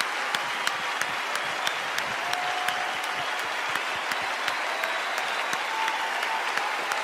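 A large crowd claps in a steady rhythm.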